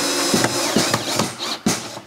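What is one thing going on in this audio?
A cordless drill whirs into wood.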